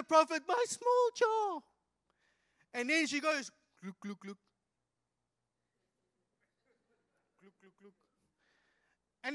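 A man speaks with animation into a microphone, heard through a loudspeaker, with long pauses.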